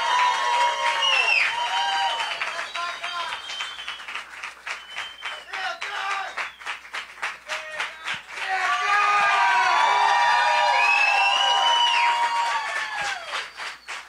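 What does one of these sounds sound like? A crowd cheers and whistles loudly.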